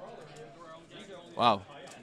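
A hand slides a small plastic piece across a cloth game mat.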